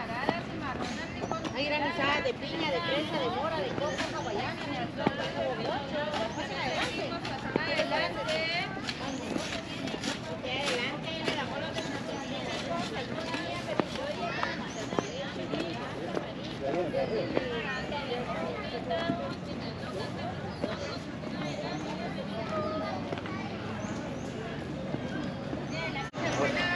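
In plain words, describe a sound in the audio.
People chat in the distance outdoors.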